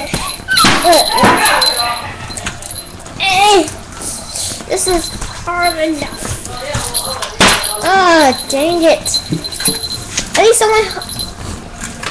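A young child talks close by in a high, lively voice.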